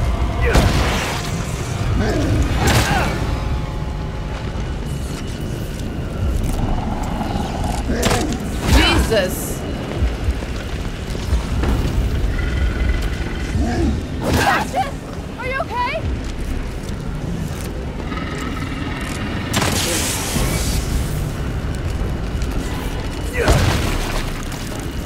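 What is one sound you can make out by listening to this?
A gun fires in loud sudden bursts.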